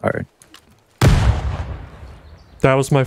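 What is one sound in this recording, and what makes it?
An explosion booms in the distance and rumbles away.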